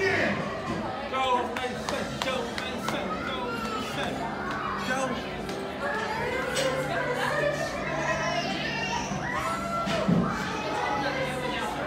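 Small children shout and squeal close by.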